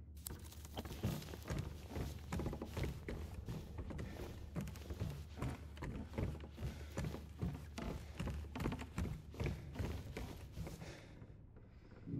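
Footsteps thud steadily on a wooden floor and stairs.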